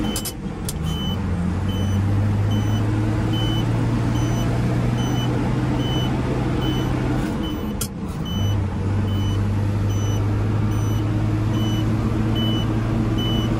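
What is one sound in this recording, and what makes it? A truck engine drones steadily, dipping briefly as gears change.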